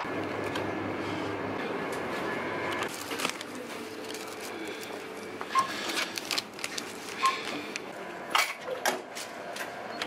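Plastic wrappers crinkle as packages are handled.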